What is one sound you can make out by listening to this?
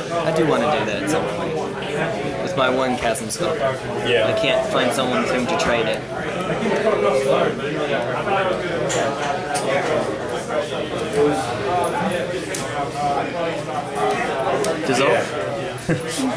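Playing cards rustle and tap as they are handled and laid down on a table.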